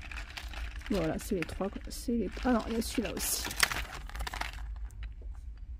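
Plastic packaging rustles and crinkles in a hand.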